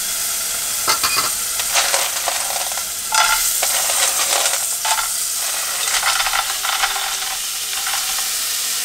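Snails clatter as they are poured into a pot.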